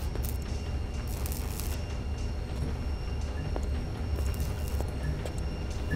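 Footsteps walk slowly across a hard floor.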